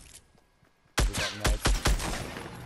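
Gunshots blast loudly several times in quick succession.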